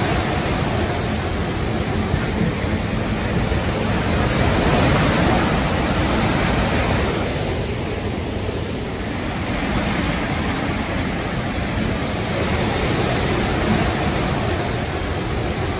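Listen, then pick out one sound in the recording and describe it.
Wind gusts outdoors, rising and falling.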